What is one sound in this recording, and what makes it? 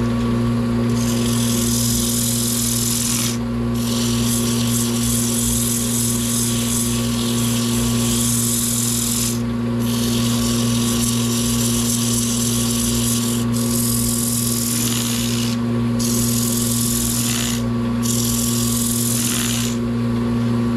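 Sandpaper hisses against spinning wood in bursts.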